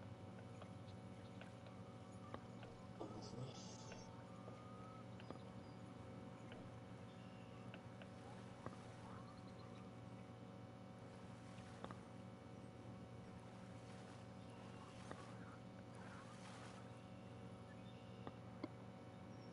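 A fishing reel winds with a soft steady whir.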